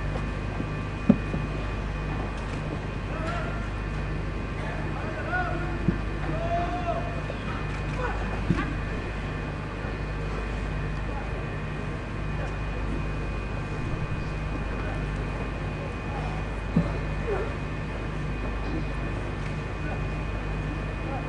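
A man speaks over a loudspeaker, heard from a distance under a large tent.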